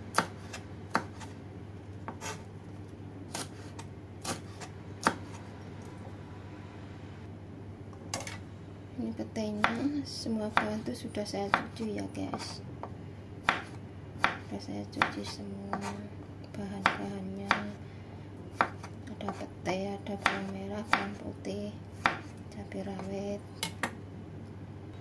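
A knife chops through vegetables on a wooden board with sharp knocks.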